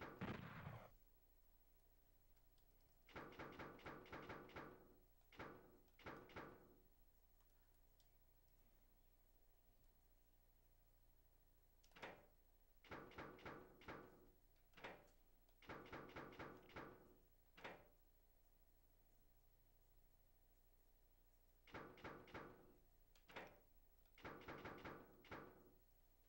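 A man speaks casually into a close microphone in short bursts.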